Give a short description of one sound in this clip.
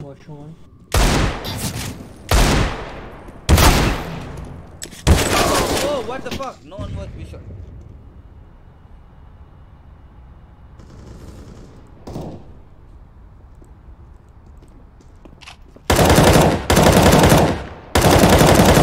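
Gunshots fire in rapid bursts, loud and close.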